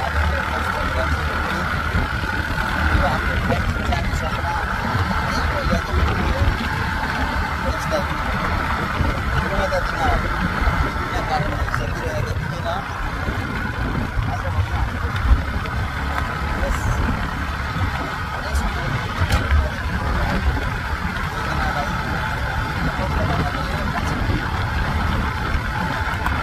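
Wind buffets the microphone outdoors while riding.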